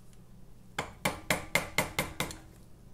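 A hammer taps repeatedly on metal.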